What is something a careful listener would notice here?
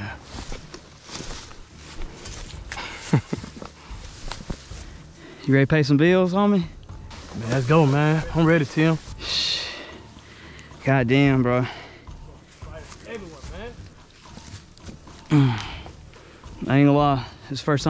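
Footsteps crunch and rustle through dry grass and leaves.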